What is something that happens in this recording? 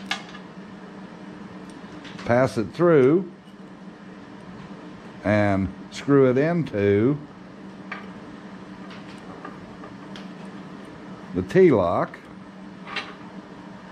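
Small metal parts click and tap against a metal surface.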